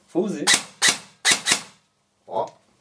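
A rifle fires several loud shots in quick succession.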